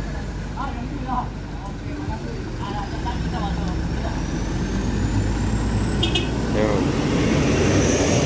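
A truck engine revs as the truck drives past.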